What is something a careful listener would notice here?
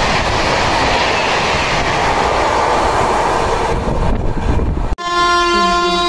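A train rushes past close by with a loud rumble and roar.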